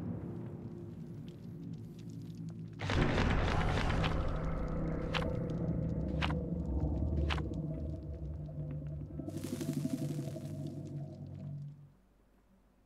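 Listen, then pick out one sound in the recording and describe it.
Loud, deep music plays and then cuts off.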